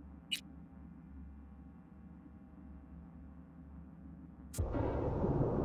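Soft, calm music plays quietly.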